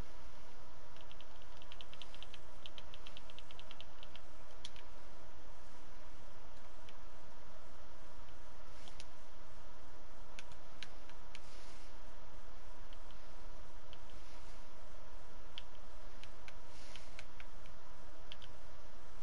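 Soft menu clicks tick in quick runs.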